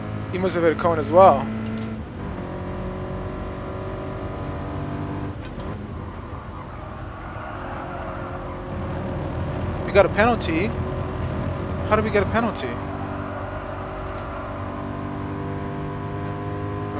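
A racing car engine drones steadily, shifting pitch as it speeds up and slows.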